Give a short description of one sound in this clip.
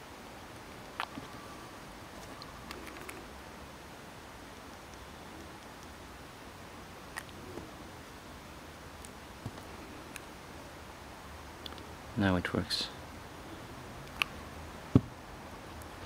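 A small glass bottle clicks softly as it is handled.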